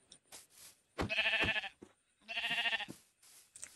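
A sheep bleats several times.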